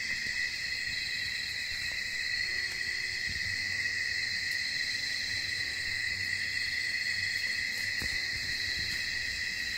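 Footsteps rustle through dry leaves and undergrowth.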